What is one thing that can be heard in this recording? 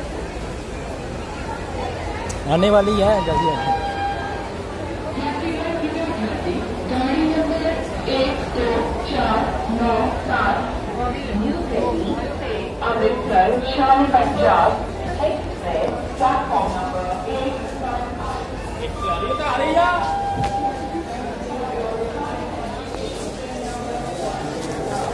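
A crowd of men and women chatters all around in a busy, echoing space.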